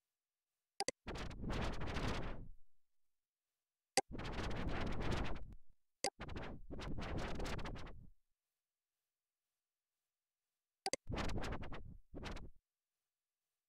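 A crackling rush of static swells up and cuts off several times.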